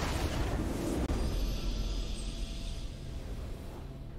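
A triumphant game fanfare swells.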